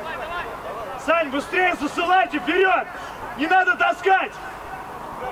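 A man shouts loudly and repeatedly nearby.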